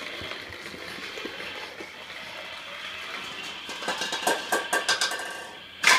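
A toy car rolls across a wooden floor.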